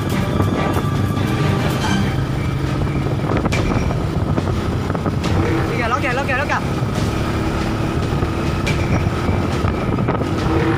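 A motorbike engine hums steadily while riding.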